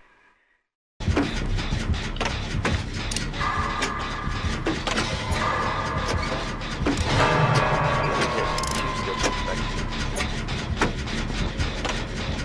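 A machine clanks and rattles as it is worked on.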